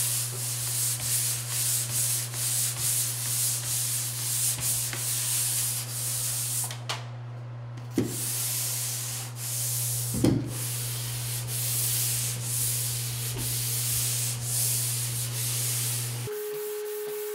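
A pole sander scrapes back and forth across drywall joint compound.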